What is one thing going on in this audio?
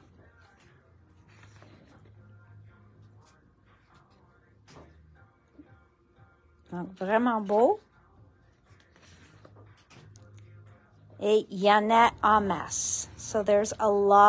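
Paper sheets rustle softly as they are leafed through by hand.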